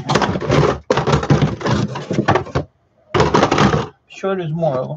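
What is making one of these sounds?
Hard plastic objects clatter and knock in a plastic tub.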